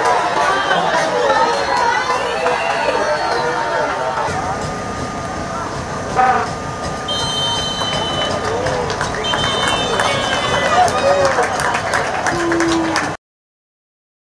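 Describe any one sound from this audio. A stadium crowd cheers and shouts from the stands.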